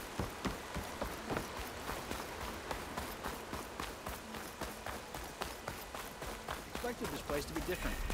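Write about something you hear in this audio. Quick footsteps run over wooden boards.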